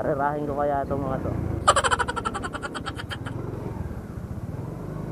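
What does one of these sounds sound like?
A motorcycle engine idles with a low, steady putter close by.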